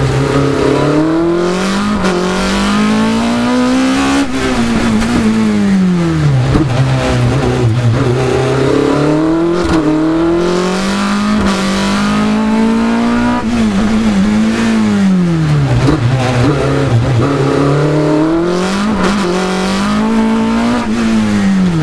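A race car engine roars close by, its pitch rising and falling as the car accelerates and brakes.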